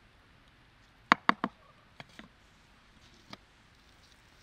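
A bowl knocks against a wooden stump.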